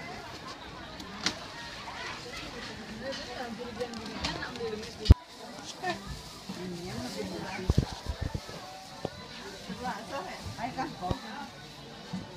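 A crowd of men and women chatters all around, close by and busy.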